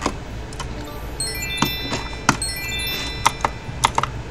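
A video game plays a short, bright chiming jingle.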